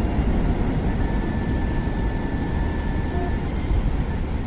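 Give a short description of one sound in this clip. A warning tone beeps.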